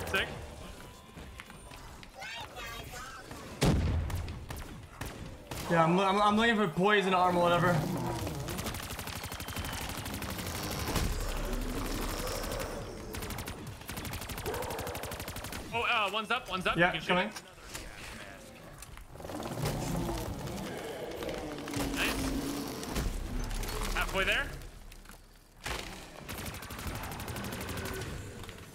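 Explosions boom in a game.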